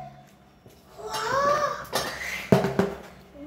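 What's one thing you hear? A young girl laughs loudly.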